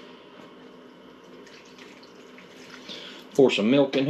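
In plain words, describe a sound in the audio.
Milk pours into a bowl.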